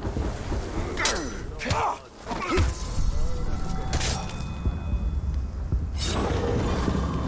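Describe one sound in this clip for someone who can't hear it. Sharp blows and thuds land in a close fight.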